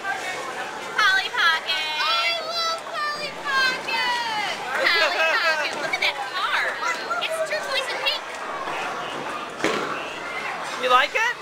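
A woman speaks excitedly close by.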